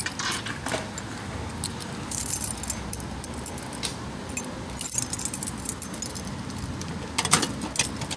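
Keys jingle on a key ring.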